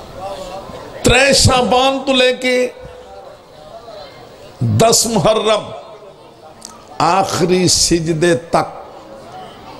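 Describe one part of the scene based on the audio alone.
An elderly man speaks with fervour through a microphone and loudspeakers, in loud bursts.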